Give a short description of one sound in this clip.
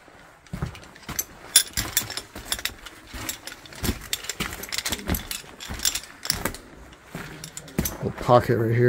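Footsteps crunch on loose stones and gravel.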